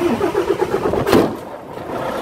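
A van door slams shut.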